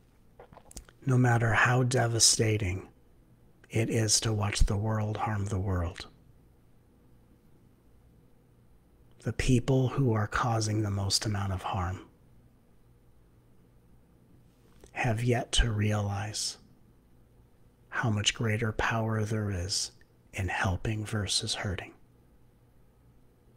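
A man speaks calmly in short phrases into a close microphone, as on an online call.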